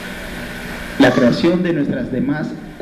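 A man speaks calmly into a microphone, heard over loudspeakers in an echoing hall.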